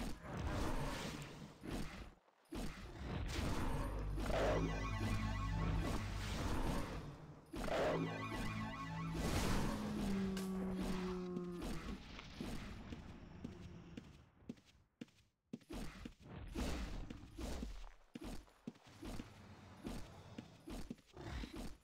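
Fighting sound effects clash and thud in quick bursts.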